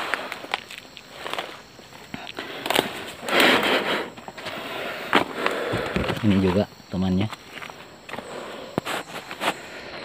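Footsteps crunch on dry leaf litter.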